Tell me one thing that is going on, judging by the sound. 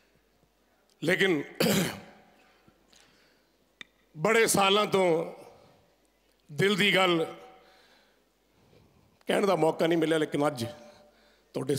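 A middle-aged man sings slow phrases into a microphone, with pauses between them, in a reverberant hall.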